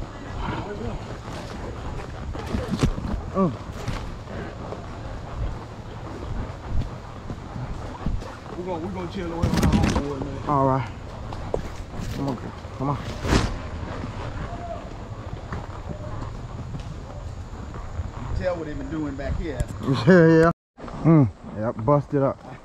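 A horse's hooves thud steadily on a dirt trail.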